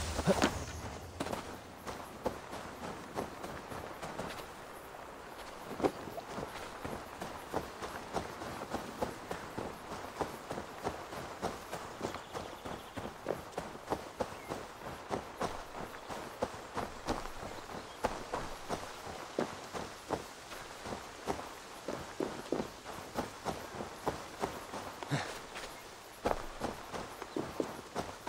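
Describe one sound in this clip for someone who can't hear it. Footsteps crunch on gravel, dirt and grass at a steady walking pace.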